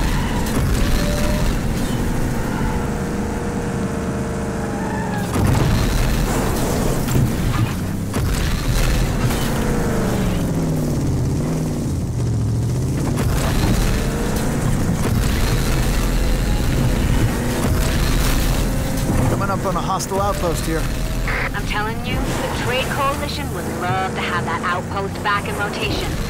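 A vehicle engine roars and revs steadily as it drives off-road.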